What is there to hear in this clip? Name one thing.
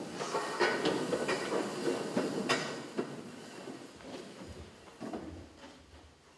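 Chairs scrape and knock as several people stand up.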